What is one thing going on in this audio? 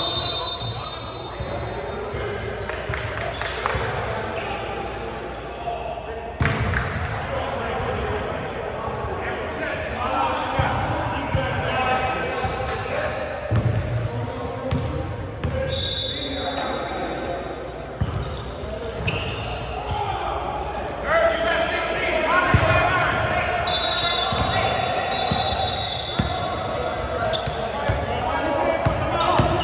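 Men call out and talk to each other across an echoing gym.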